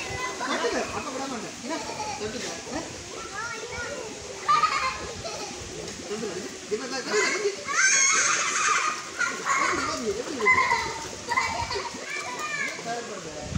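Several people talk and call out excitedly close by, with children's high voices among them.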